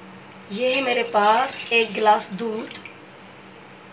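Milk pours into a metal pot.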